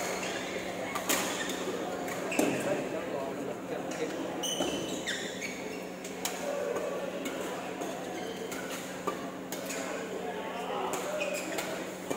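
Shuttlecocks are struck with rackets, giving sharp pops that echo in a large hall.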